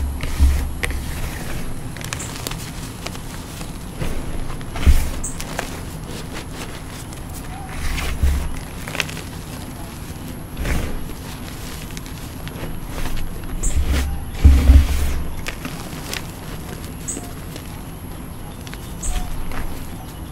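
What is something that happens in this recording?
Hands pat and thump into a heap of powder with dull soft thuds.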